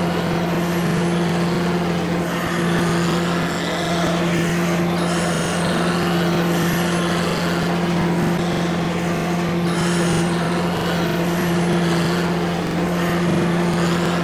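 Tractor engines roar and strain steadily.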